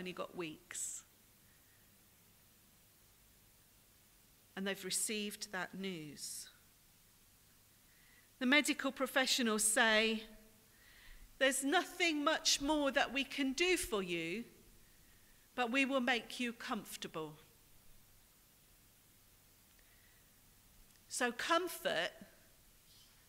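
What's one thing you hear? A woman speaks calmly through a microphone in an echoing hall, pausing between phrases.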